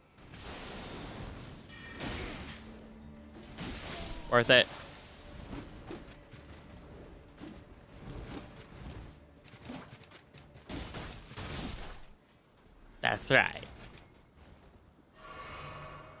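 A magic spell whooshes and crackles.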